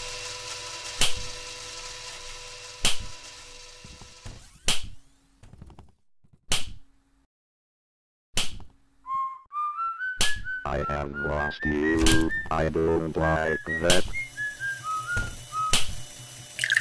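A ruler slaps sharply at a slow, steady pace.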